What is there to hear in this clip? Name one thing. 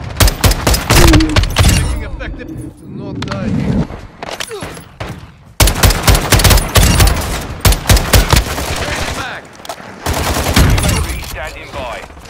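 Rapid gunfire bursts from an automatic rifle, close by.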